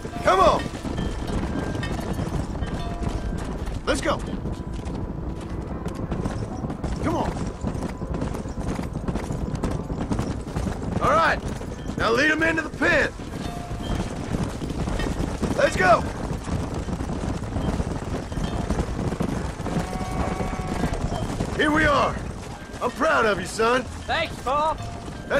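Horse hooves gallop steadily over dirt.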